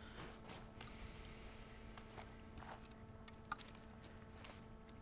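Clothing rustles softly as a person shifts while crouching.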